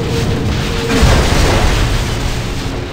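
A metal machine crashes and shatters with a loud burst.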